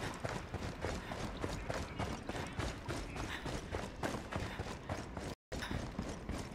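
Footsteps run on dirt.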